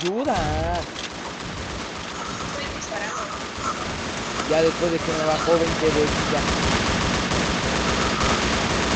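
Rapid gunshots fire from a rifle in a video game.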